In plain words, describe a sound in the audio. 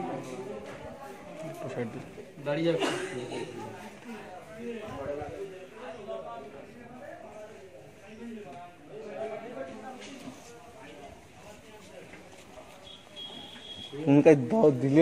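Several adults talk quietly nearby.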